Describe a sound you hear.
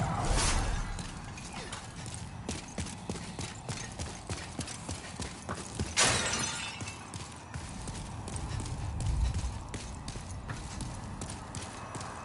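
Armored footsteps clank quickly on stone.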